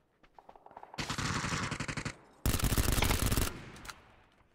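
A rifle fires rapid bursts of gunshots close by.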